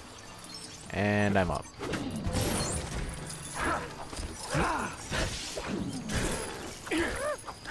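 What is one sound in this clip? Laser blasts zap and crackle in a fight.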